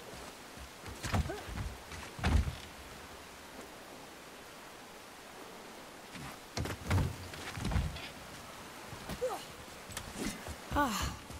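A wooden ladder creaks as a man climbs it.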